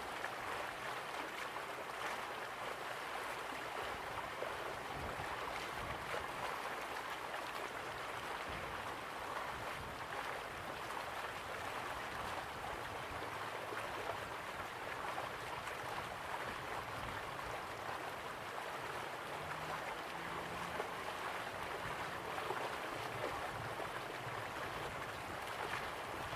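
Water rushes steadily down a waterfall.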